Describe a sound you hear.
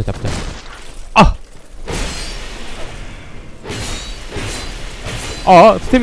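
Metal blades clash and strike in a fight.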